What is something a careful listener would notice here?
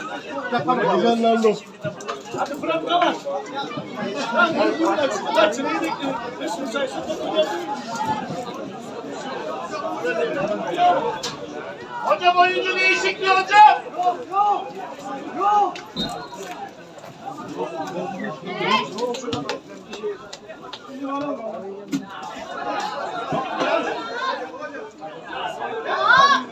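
Men chatter and call out close by, outdoors.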